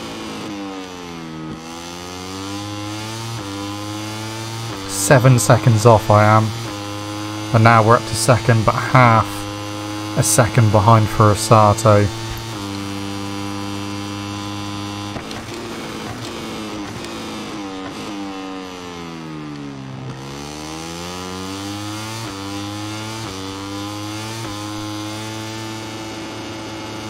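A motorcycle engine whines loudly, revving up through the gears and dropping in pitch when slowing for corners.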